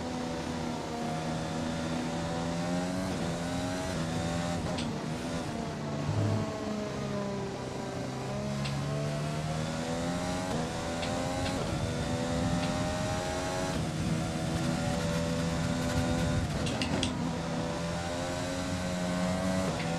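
A racing car engine whines loudly, revving up and down through gear changes.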